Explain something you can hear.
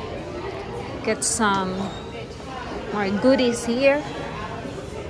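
Young women chat quietly nearby.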